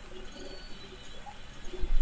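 A wet burst of liquid splatters loudly.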